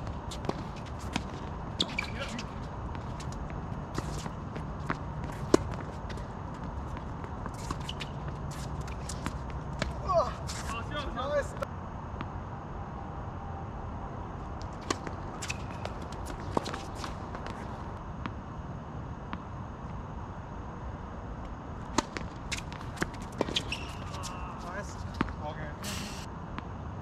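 Tennis balls are struck with rackets, making sharp pops outdoors.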